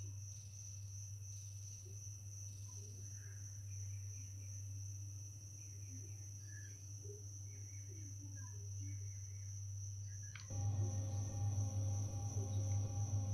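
A spacecraft engine hums low and steadily, growing louder near the end.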